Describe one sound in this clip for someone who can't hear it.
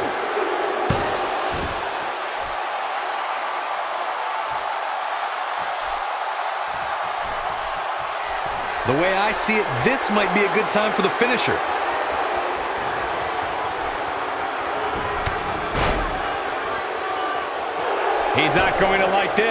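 A large crowd cheers and murmurs steadily.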